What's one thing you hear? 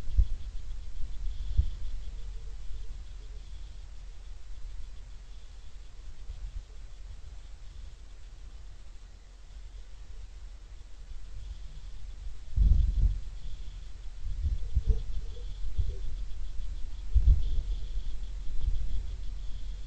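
Wind gusts against the microphone outdoors.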